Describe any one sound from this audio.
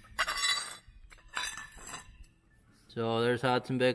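A small metal part clinks down onto a concrete floor.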